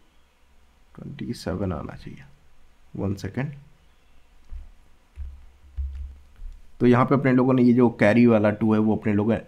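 A young man speaks calmly and clearly into a close microphone.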